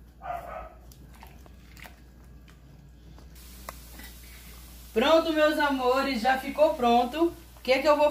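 A spoon stirs thick food in a pan.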